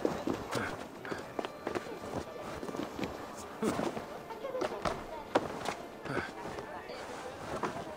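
Hands scrape and grip while climbing a wall.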